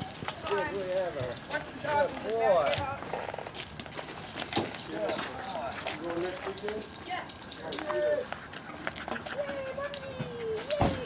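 Dogs whine and yelp in high, wavering cries close by.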